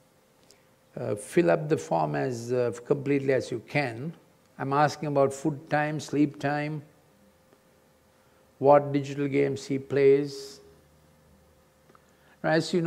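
An elderly man speaks calmly through a microphone, pausing between phrases.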